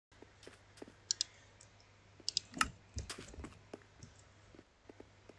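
Short game menu clicks sound.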